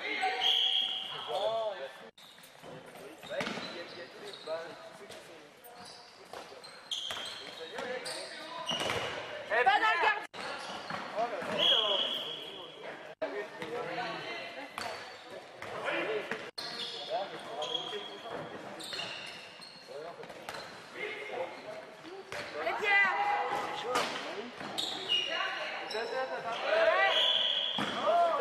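A ball bounces on the floor.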